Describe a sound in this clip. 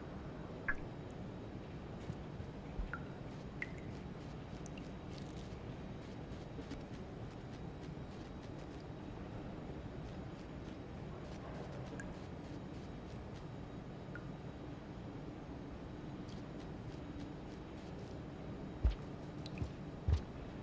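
Short, soft electronic blips sound now and then.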